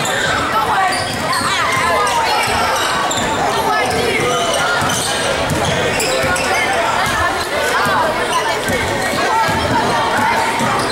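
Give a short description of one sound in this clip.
A crowd of spectators chatters throughout.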